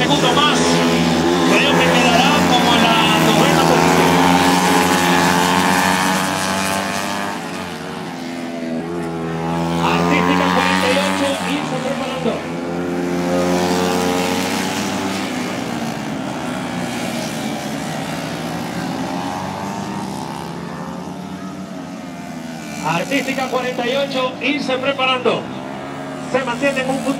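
Motorcycle engines whine and rev loudly as they race past.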